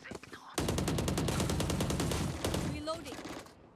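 Rapid gunfire rattles in a burst.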